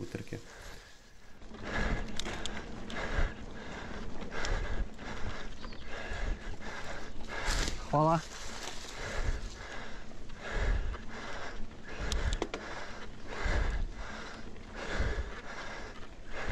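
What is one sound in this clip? Bicycle tyres roll and bump over a dirt trail, with the frame rattling.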